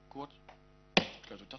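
A wooden gavel knocks once on a table.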